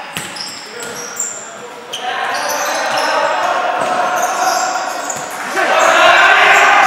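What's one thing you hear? Sports shoes squeak on a wooden indoor court in an echoing sports hall.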